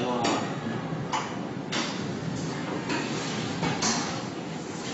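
Metal tubes clink against each other on a moving conveyor.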